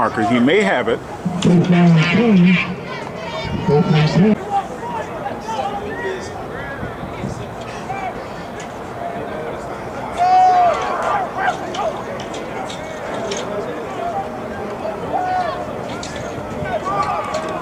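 Young players call out to each other on the field.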